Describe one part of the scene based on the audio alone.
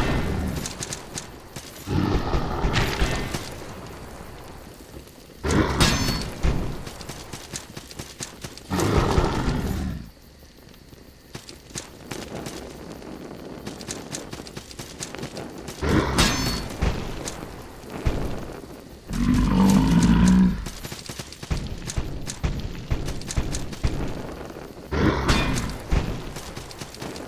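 Swords clash and slash in quick hits.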